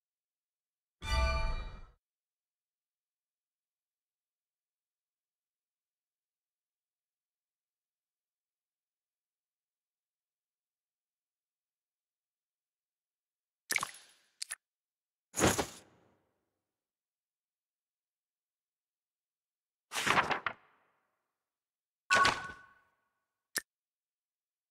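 Short game menu chimes and clicks sound as buttons are tapped.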